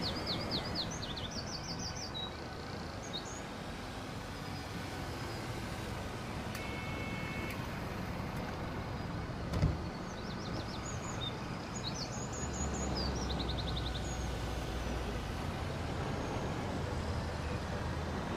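A bus engine hums steadily as the bus drives slowly.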